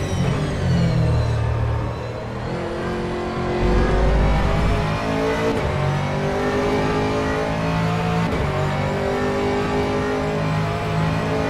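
A racing car engine roars, revving up and down through the gears.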